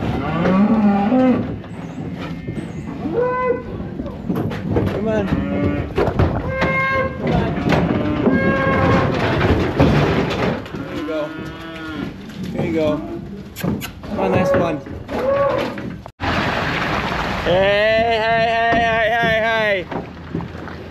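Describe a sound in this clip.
Cattle moo loudly and repeatedly nearby.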